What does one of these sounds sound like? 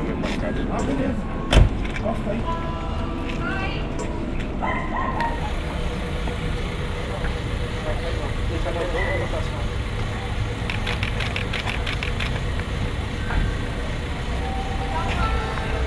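Men talk nearby in low voices.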